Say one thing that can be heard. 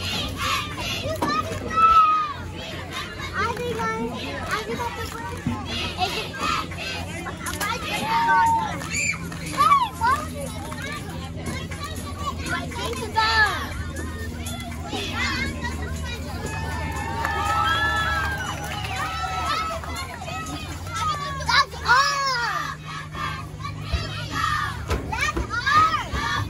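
A group of young girls chant and shout cheers together outdoors.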